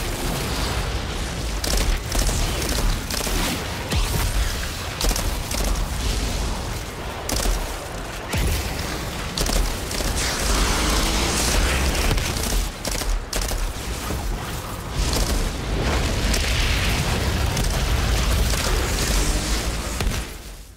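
Flames roar and burst in loud explosions.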